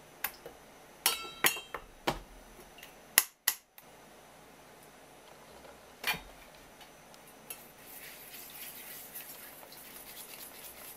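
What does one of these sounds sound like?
A whisk clatters and scrapes against a metal bowl.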